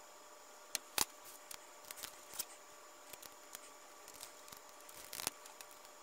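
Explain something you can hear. A knob clicks and rattles as fingers turn and pull at it.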